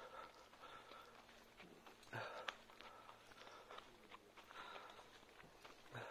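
A small dog's paws patter on a paved path.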